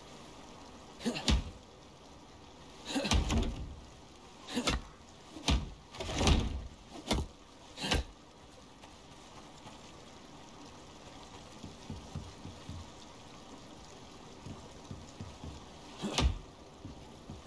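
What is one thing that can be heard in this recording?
Heavy wooden knocks and thuds ring out as logs are set in place.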